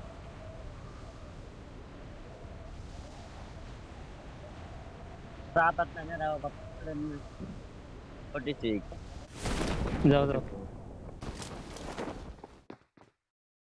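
Wind rushes steadily past a gliding parachute.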